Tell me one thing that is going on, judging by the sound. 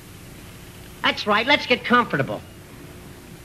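A man speaks in short phrases.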